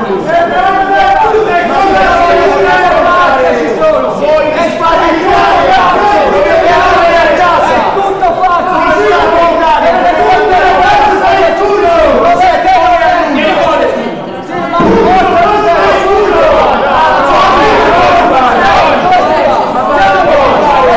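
Several people talk over one another.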